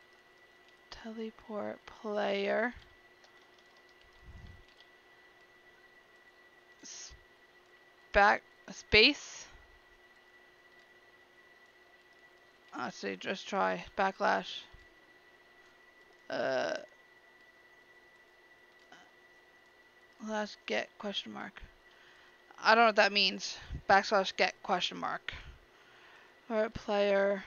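A young woman talks casually into a headset microphone, in short bursts.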